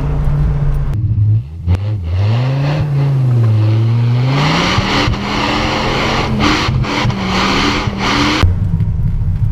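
A car exhaust roars and revs loudly up close.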